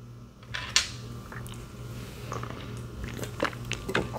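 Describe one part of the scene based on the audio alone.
A young man gulps a drink from a can.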